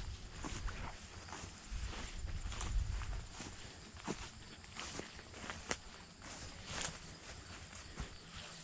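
A dog's paws rustle through tall grass.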